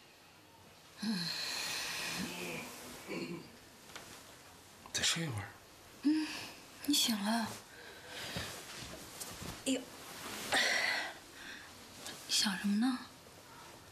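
A woman speaks with concern, close by.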